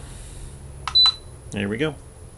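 An electronic charger gives a short high beep.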